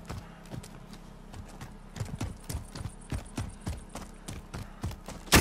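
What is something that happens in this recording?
Quick footsteps run through grass.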